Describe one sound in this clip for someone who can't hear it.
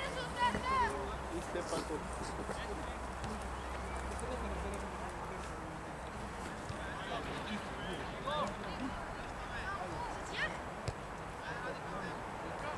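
Men shout to each other in the distance outdoors.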